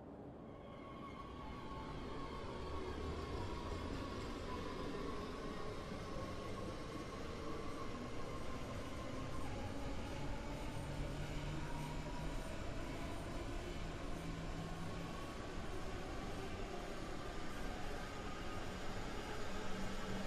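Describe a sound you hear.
A train rumbles steadily as it pulls away and picks up speed.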